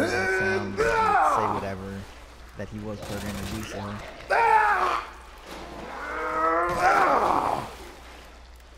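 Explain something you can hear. A creature groans and snarls loudly up close.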